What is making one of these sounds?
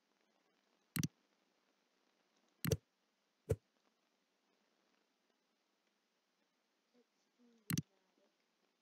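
Short, sharp game menu clicks sound a few times.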